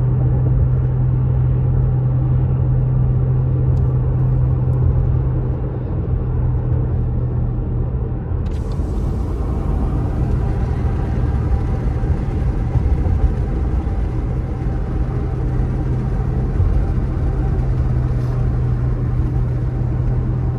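Tyres roll on smooth pavement with a steady rumble.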